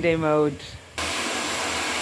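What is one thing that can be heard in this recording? A hot air brush blows with a steady whirring hiss.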